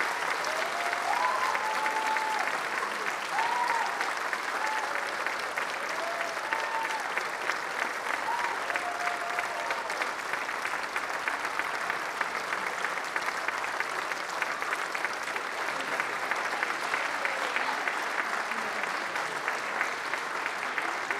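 An audience applauds loudly in a large hall.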